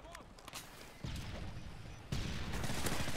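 A gun fires loud shots.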